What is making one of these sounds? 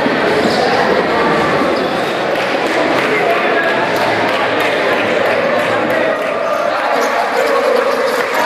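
Players clap their hands.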